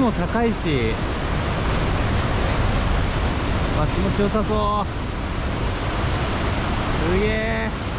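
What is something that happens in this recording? Waves break and wash over the shore in a steady roar.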